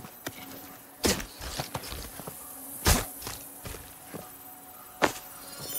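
A knife strikes into flesh with heavy thuds.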